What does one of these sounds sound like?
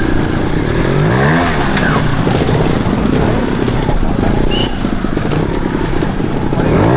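A trials motorcycle engine revs and sputters close by.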